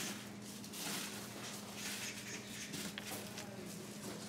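A plastic glove crinkles as a hand scoops dough.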